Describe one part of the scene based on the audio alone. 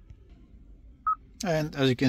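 An electronic device beeps once briefly.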